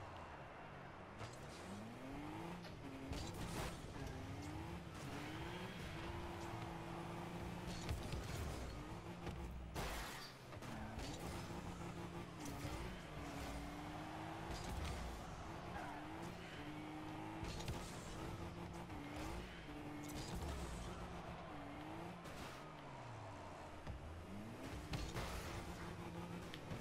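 A game car engine hums and revs up and down throughout.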